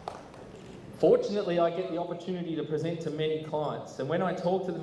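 A man speaks calmly through a microphone and loudspeakers in a large echoing hall.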